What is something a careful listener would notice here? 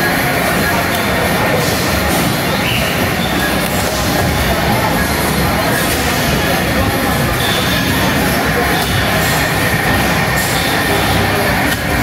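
Racing arcade games roar loudly with engine and music sounds from nearby loudspeakers.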